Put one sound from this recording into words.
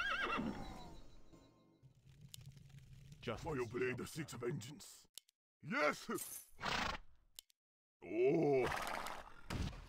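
Weapons clash and spells burst in a fight.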